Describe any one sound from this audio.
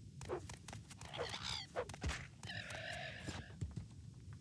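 A winged creature shrieks loudly.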